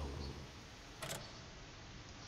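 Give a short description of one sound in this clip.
A tape recorder clicks off.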